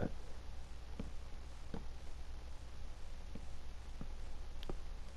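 Wooden blocks are placed with short, soft knocks.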